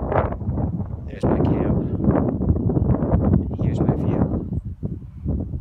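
Wind gusts roughly against the microphone outdoors.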